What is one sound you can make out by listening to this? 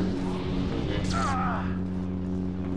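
Laser blasts zap and crackle.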